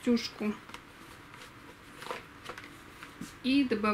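A plastic plant pot rustles as a hand handles it.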